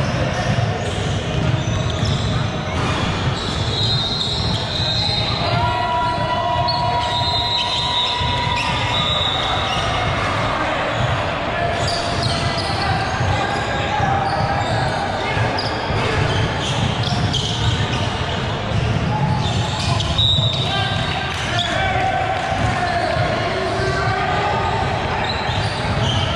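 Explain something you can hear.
A crowd of spectators chatters and calls out.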